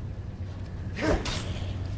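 A creature lets out a short, harsh snarl.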